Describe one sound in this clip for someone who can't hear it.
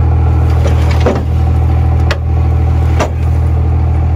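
Metal creaks and cracks as a car body is crushed.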